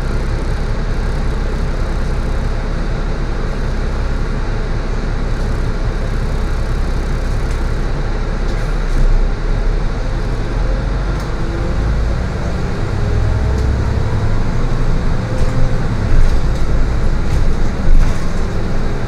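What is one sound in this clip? A vehicle's engine rumbles steadily, heard from inside the cab.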